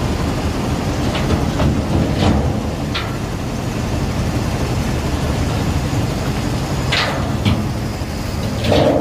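Iron ore pours off a tipping dump truck with a rumbling rush.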